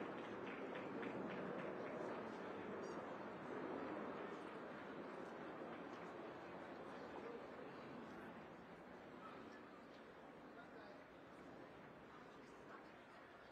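A crowd of adults murmurs and chats in the background.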